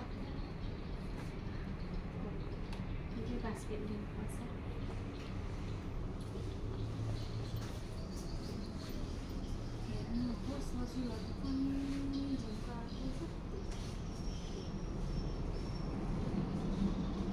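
Jewellery clinks softly as it is handled.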